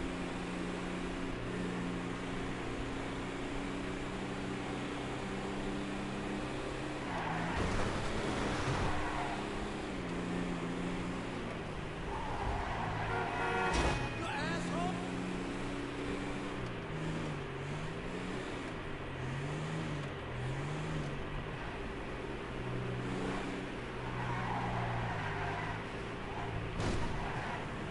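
A car engine hums steadily and shifts pitch as it drives.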